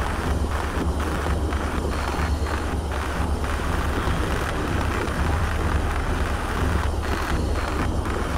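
An underwater cutting torch hisses and crackles steadily.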